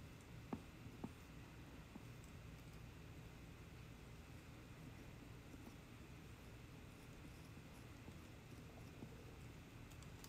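A small metal tool scrapes and taps softly against a clay pot.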